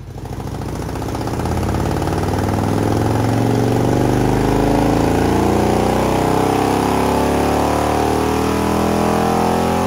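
A motorcycle engine revs up loudly and roars steadily.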